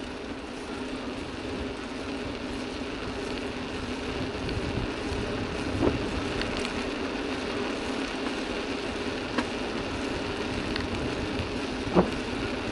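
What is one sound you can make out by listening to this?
Wind rushes steadily past a moving rider.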